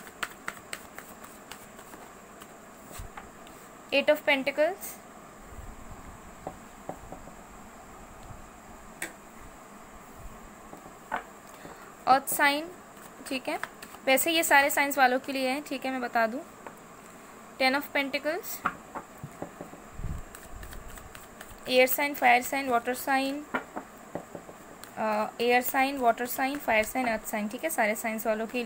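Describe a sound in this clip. Playing cards are shuffled by hand with soft flicking and rustling.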